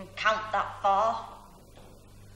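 A child speaks in a high, sing-song voice.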